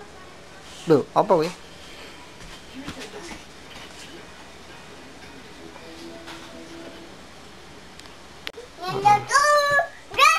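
A little girl sings and shouts excitedly nearby.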